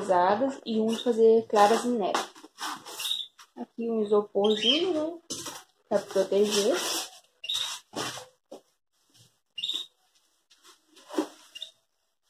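Cardboard flaps rustle and scrape.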